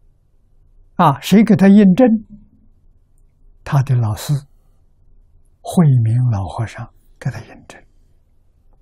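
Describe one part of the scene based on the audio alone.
An elderly man speaks calmly and slowly in short phrases, close to a microphone.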